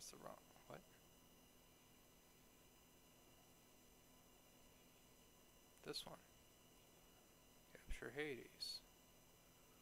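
A man speaks quietly into a microphone in short bursts.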